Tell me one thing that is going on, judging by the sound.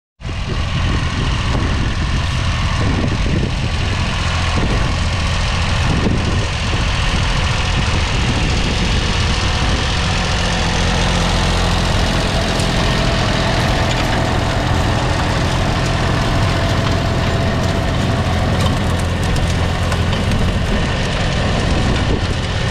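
A rotary tiller churns and grinds through soil.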